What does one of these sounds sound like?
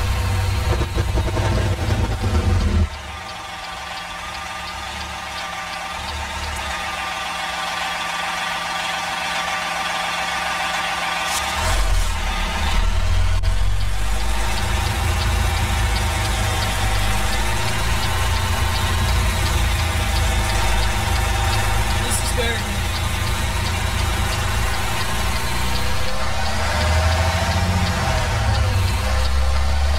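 A truck's diesel engine rumbles steadily, rising and falling as it drives.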